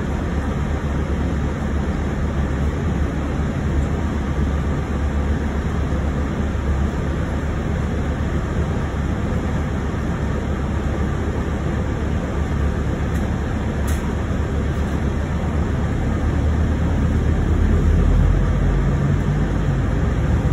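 A bus engine rumbles steadily as the bus rolls along, rising slightly louder toward the end.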